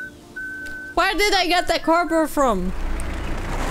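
A young woman speaks in a high, sing-song voice close to a microphone.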